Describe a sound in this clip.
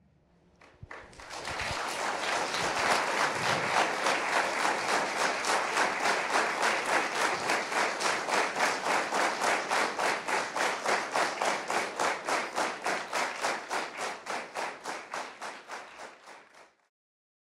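An acoustic guitar is strummed in a fast, steady rhythm.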